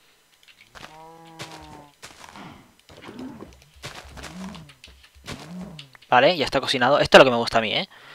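A blade strikes a cow with dull thuds.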